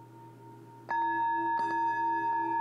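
A man strikes metal singing bowls with a mallet.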